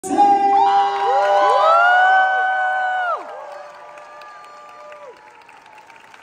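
A crowd whoops and cheers loudly in a large echoing hall, then quiets down.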